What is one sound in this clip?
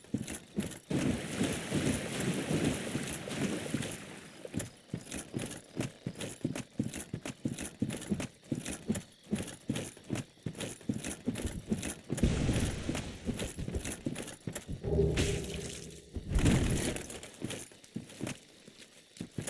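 Armoured footsteps thud quickly through grass and brush.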